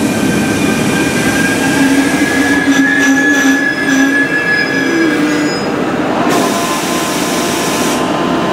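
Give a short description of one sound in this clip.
A train rolls slowly along the tracks with a steady mechanical whine.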